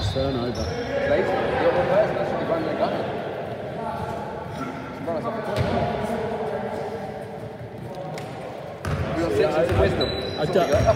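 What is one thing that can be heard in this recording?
Men call out to one another across an echoing hall.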